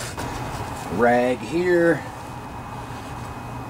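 A paper towel rubs and wipes over a metal surface.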